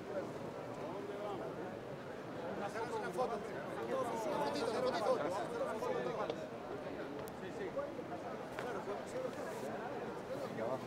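A crowd of men and women chatter together outdoors.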